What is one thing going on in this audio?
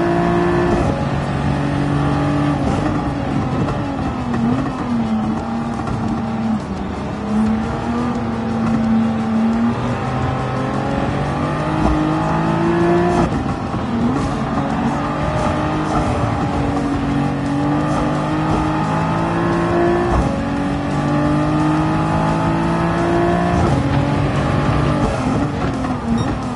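A racing car engine roars loudly, revving up through the gears and dropping in pitch when braking.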